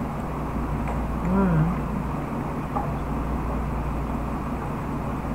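A spoon scrapes and clinks against a cup.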